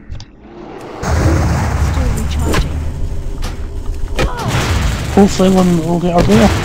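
A magic spell whooshes and crackles loudly.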